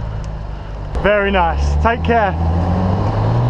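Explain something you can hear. A man speaks nearby from a car window.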